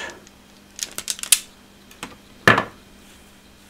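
Wire strippers click and snap as they strip a wire.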